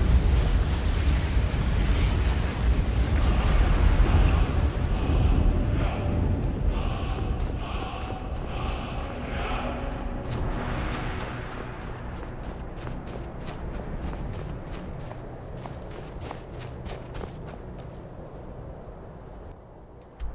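Wind roars and gusts outdoors in a snowstorm, slowly growing quieter.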